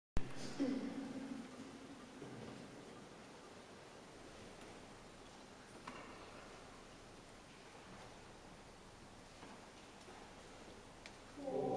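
A choir sings a chord that rings and fades slowly in a large echoing hall.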